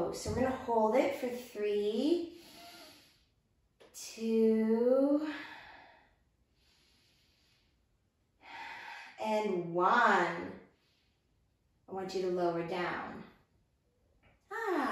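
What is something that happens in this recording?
A woman speaks calmly and clearly into a close microphone, giving slow instructions.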